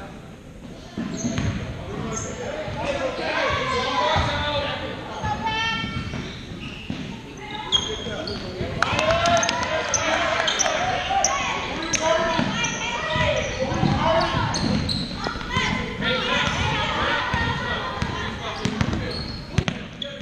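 Sneakers squeak on a gym floor, echoing in a large hall.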